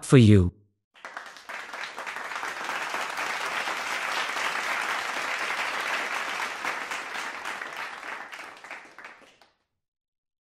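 A crowd applauds.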